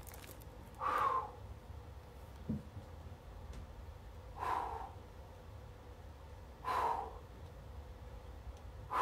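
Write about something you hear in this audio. A man breathes out heavily and slowly, in regular breaths, close by.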